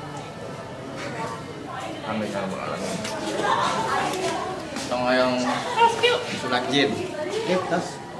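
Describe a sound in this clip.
Several young men talk and shout excitedly over one another close by.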